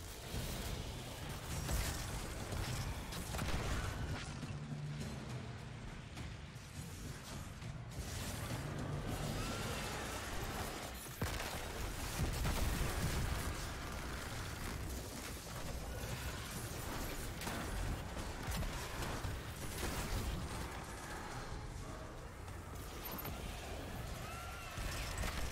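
Gunfire from a video game rattles and booms.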